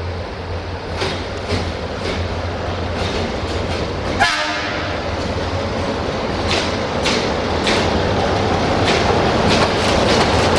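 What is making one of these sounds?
Steel wheels click and clatter over rail joints.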